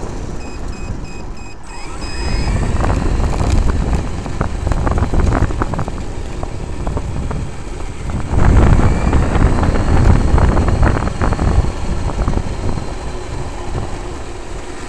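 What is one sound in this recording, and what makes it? A small electric motor whines as a toy car speeds along.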